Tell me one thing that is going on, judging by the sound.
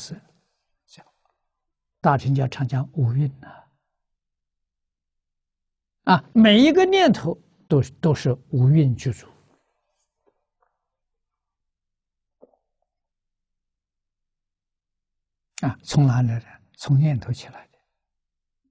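An elderly man speaks calmly through a microphone, with long pauses.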